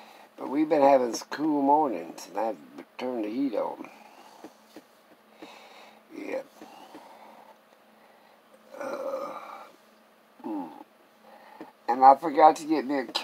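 An elderly man talks close by, in a low, animated voice.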